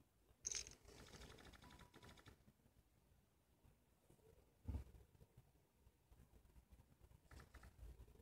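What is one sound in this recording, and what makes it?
Playing cards flick down onto a table with short sound effects.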